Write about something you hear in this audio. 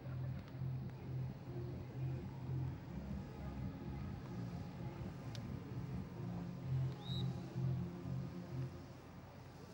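Young women talk together outdoors at a distance.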